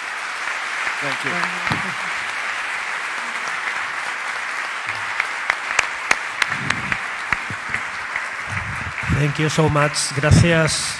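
An elderly woman speaks into a microphone in a large hall.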